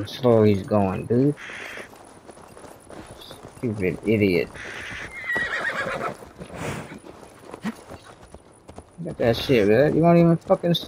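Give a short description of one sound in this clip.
Horse hooves clop slowly on a dirt path.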